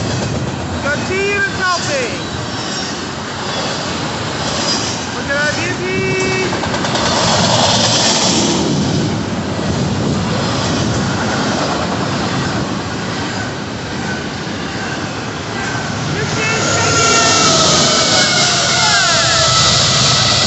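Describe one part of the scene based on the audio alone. Train wheels squeal sharply on the rails now and then.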